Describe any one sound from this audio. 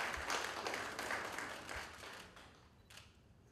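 Several people applaud.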